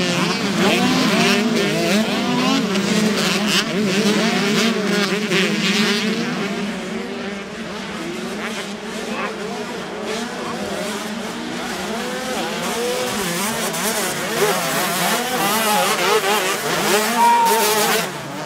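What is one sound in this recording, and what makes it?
Motorcycle engines rev and whine loudly as dirt bikes race and jump.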